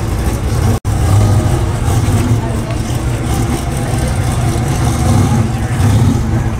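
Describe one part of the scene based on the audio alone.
A car engine revs and roars as the car pulls slowly away.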